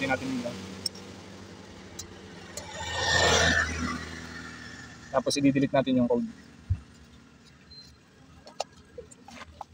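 A plastic electrical connector clicks as it is pulled apart.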